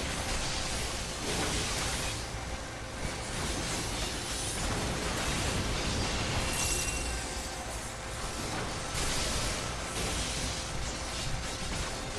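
Magical blasts and combat effects whoosh and crackle continuously.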